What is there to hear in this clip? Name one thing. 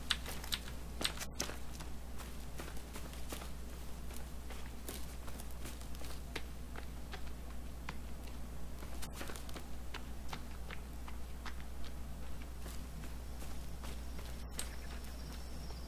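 Footsteps rustle through grass at a steady walk.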